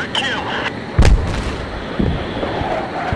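A heavy explosion booms with a deep rumble.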